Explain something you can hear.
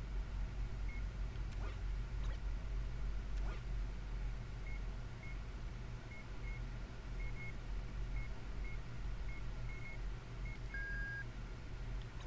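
Short electronic blips tick as a menu cursor moves.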